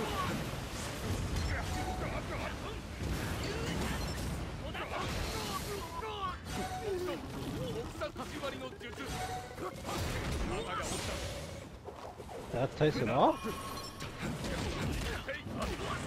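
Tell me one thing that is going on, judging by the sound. Sword slashes and magic blasts whoosh and clash in a fast fight.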